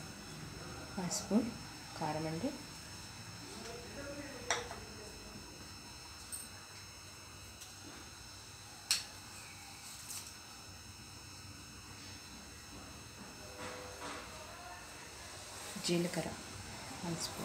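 A spoon taps against the rim of a metal pot.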